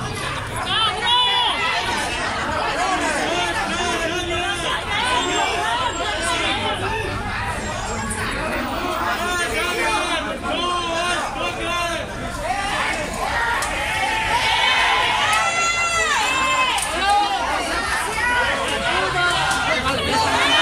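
A crowd of men and women shout and argue outdoors.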